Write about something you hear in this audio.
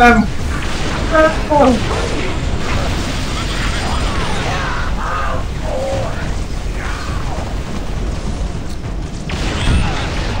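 Energy guns fire in rapid bursts.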